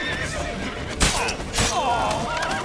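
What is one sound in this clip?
Swords clash and ring in a fight.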